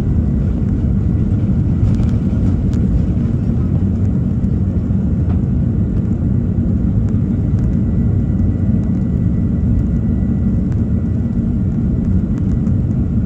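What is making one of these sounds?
A jet engine roars steadily from inside an aircraft cabin.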